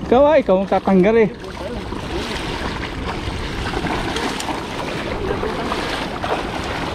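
Footsteps wade and splash through shallow water.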